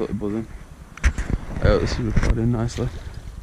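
A fish splashes in the water nearby.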